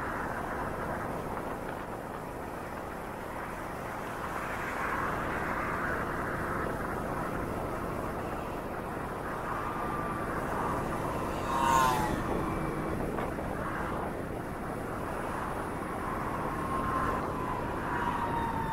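Wind rushes past a moving rider.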